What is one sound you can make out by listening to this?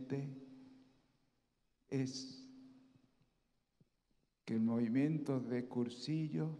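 An elderly man speaks through a microphone in a large echoing hall, with pauses.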